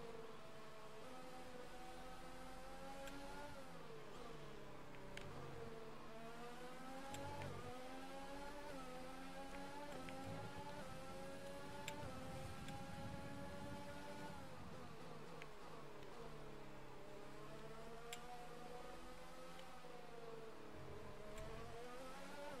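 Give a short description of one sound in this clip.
A racing car engine screams at high revs, rising with each gear and dropping sharply on braking.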